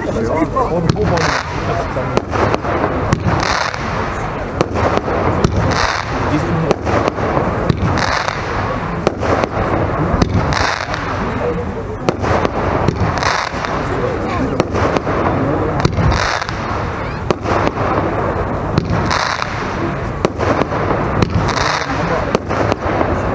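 Fireworks boom and crack overhead again and again.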